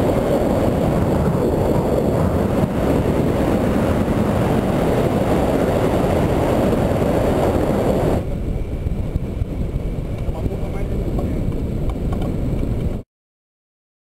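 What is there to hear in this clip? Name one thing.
Wind rushes loudly past a microphone in flight.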